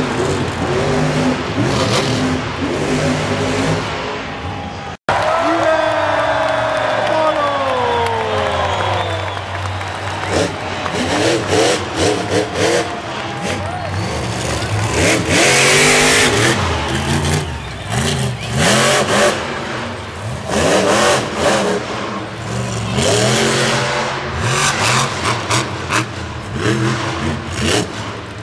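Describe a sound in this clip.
Monster truck engines roar and rev loudly.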